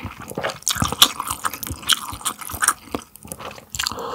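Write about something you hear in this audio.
A young man slurps and gulps a drink up close.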